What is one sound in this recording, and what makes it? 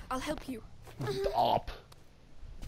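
A boy strains and grunts.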